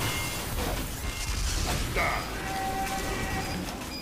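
Shotguns fire with sharp blasts.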